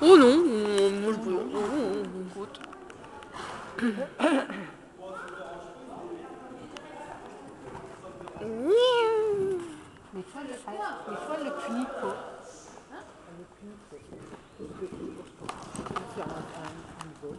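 Young women talk nearby in a large echoing hall.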